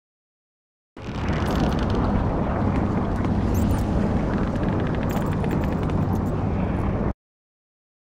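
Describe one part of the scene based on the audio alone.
A low fiery rumble roars steadily.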